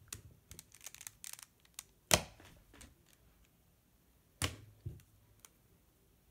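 A plastic puzzle cube clicks and clacks as its layers are turned quickly.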